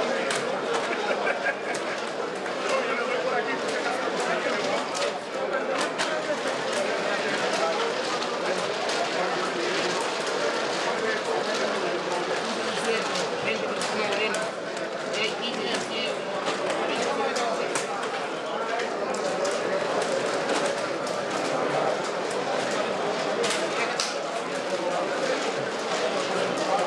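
A crowd murmurs and chatters throughout a large room.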